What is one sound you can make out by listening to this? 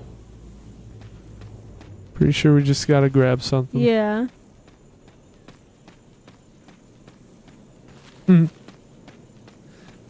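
Footsteps crunch steadily through grass and leaves.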